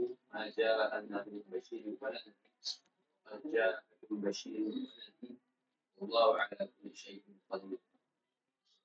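A man speaks calmly and steadily into a close microphone, pausing between phrases.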